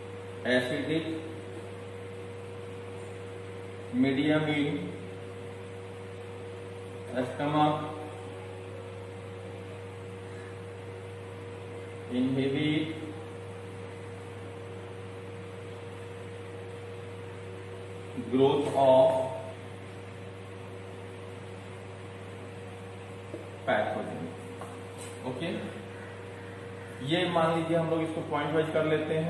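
A man speaks calmly in short phrases with long pauses.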